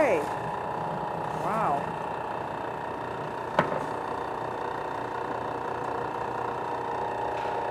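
A stand mixer hums steadily as its beater turns.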